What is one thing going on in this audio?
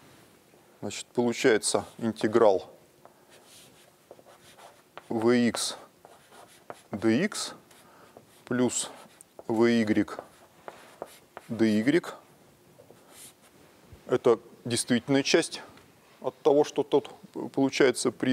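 A middle-aged man lectures in a level voice.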